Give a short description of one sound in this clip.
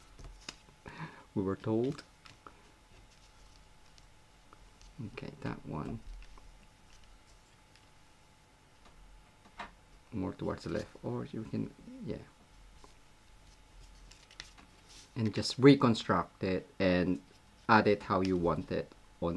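Paper rustles softly as it is handled.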